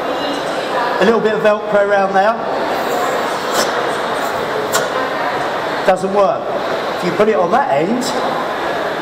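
A man speaks with animation through a microphone and loudspeakers in a large echoing hall.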